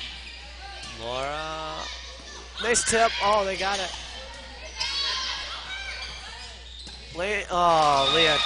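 Young women shout and call out loudly in an echoing gym.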